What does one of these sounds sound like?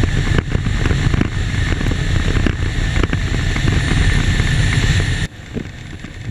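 An engine drones steadily at high speed.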